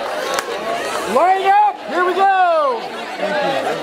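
Young women whoop and cheer in high voices.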